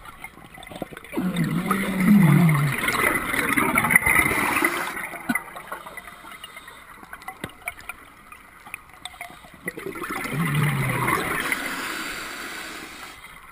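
Bubbles from a diver's breathing rush and gurgle underwater in repeated bursts.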